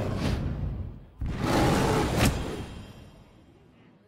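A loud game sound of a magical blow crashes and rings out, then fades.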